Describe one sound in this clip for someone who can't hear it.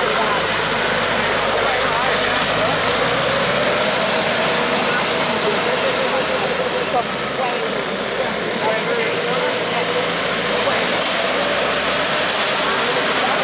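A small diesel engine rumbles steadily nearby.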